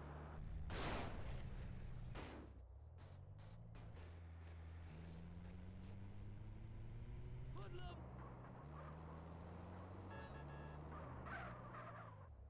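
A vehicle engine hums and revs steadily as it drives.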